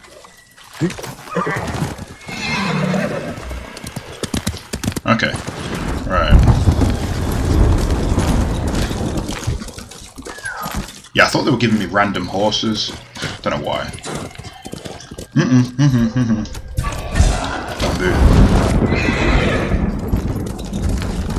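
A horse gallops with thudding hooves on snow.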